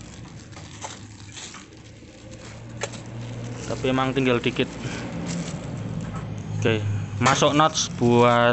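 A plastic bag crinkles and rustles in a hand.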